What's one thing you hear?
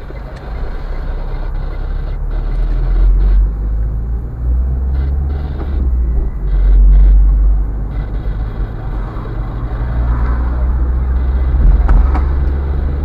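Tyres roll on the road with a low rumble.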